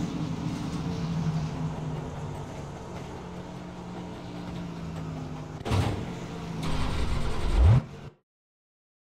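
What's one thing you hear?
A race car engine idles with a low, steady rumble, then roars and revs up before cutting out.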